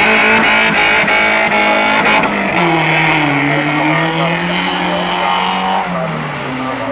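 A racing buggy engine roars loudly and revs up and down close by.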